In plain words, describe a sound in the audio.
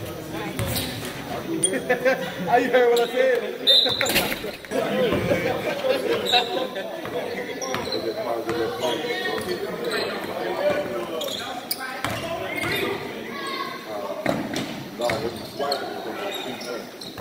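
A crowd of young people chatter and call out in an echoing gym.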